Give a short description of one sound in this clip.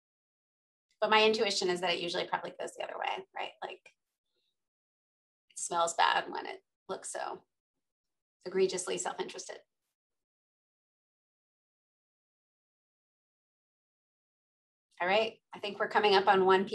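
A woman speaks calmly over an online call, with pauses.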